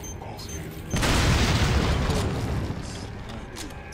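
A shotgun fires with a loud boom that echoes away.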